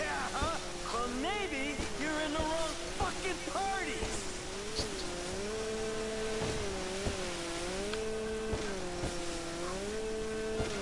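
Water splashes and sprays against a jet ski's hull.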